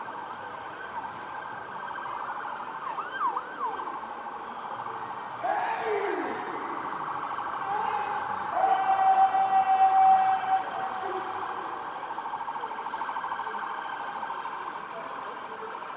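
A large crowd murmurs and cheers outdoors at a distance.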